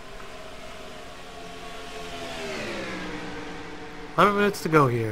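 A race car engine drops in pitch as it passes close by.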